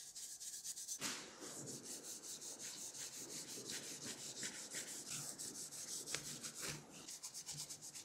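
A cloth rubs against a metal motor casing.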